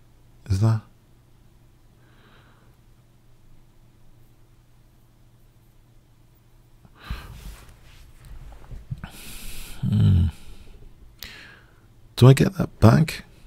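A middle-aged man speaks into a microphone with animation, in short bursts.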